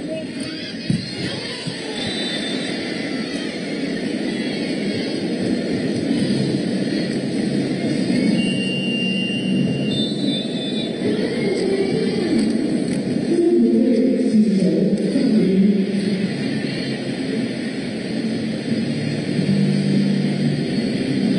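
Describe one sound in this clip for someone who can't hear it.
A crowd murmurs and cheers in a large indoor arena.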